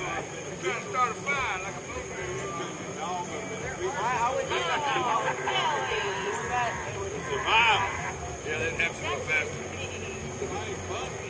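Several adults talk and call out to each other at a distance outdoors.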